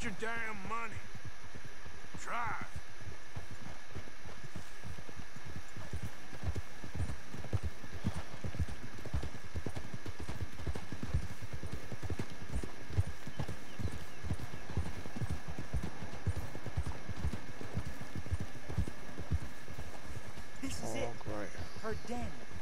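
Horse hooves clop steadily on a rough trail.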